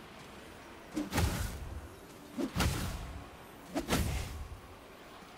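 A heavy blow lands with a deep thud, again and again.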